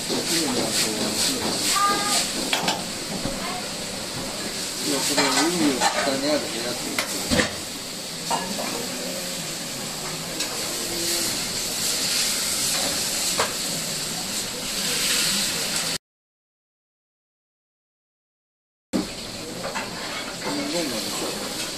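A metal ladle clanks and scrapes against a wok.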